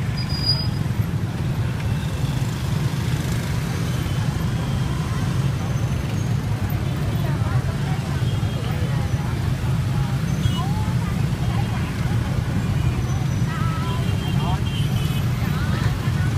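Many motor scooter engines hum in dense traffic.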